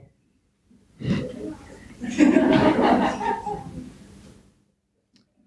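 A teenage girl laughs softly.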